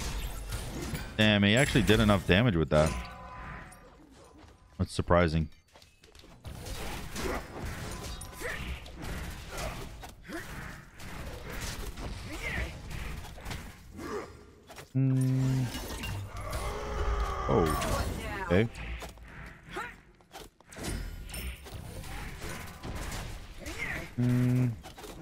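Magic blasts and weapon strikes clash and whoosh.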